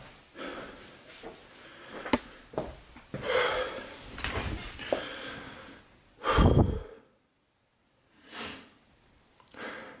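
A young man breathes heavily close by.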